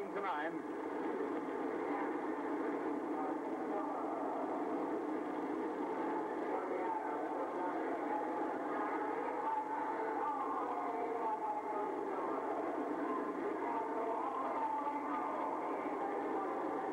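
A large crowd cheers and shouts in an echoing arena.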